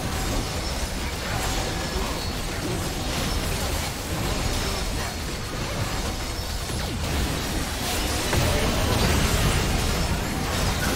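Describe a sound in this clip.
Fantasy battle effects whoosh, crackle and boom without pause.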